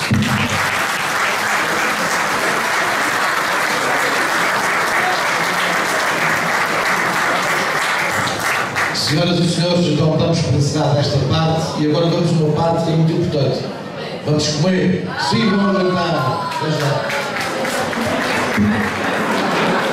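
A crowd applauds in a hall.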